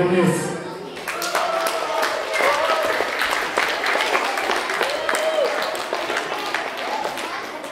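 People applaud.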